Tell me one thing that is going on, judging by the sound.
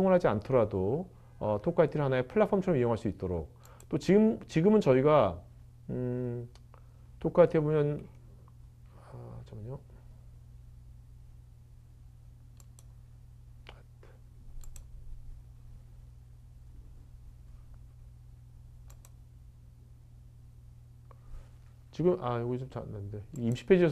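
A middle-aged man speaks calmly into a microphone, pausing between phrases.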